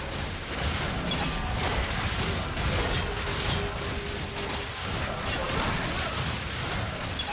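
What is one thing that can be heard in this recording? Magic spells blast and crackle during a fast fight.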